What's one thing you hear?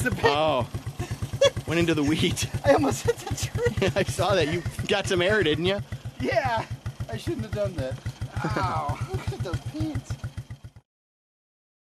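A quad bike engine putters and revs close by.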